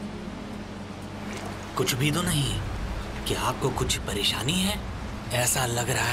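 Water flows and splashes in a stream.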